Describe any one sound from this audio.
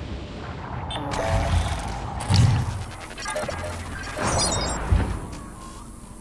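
Gunshots and blasts from a video game boom loudly.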